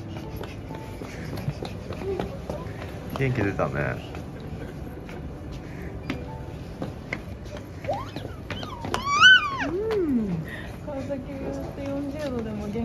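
Small footsteps patter on a hard floor.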